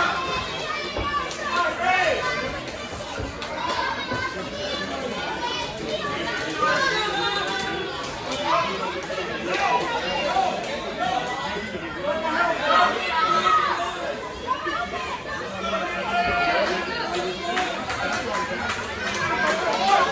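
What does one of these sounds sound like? An audience chatters in a large echoing hall.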